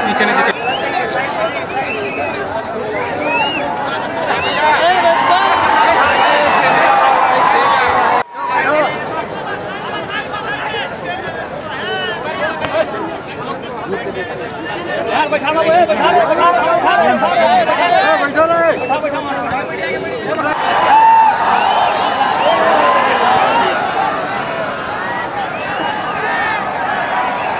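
A large crowd outdoors shouts and cheers loudly.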